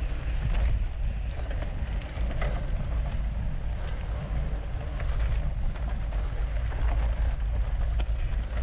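Wind rumbles against a moving microphone outdoors.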